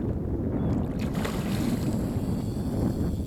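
A hooked fish splashes at the surface of the water.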